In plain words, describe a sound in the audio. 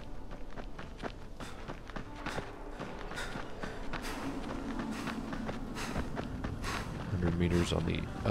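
Quick footsteps thud while running.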